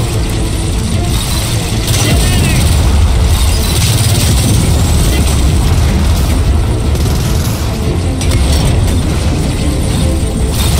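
A low rumbling roar of battle goes on throughout.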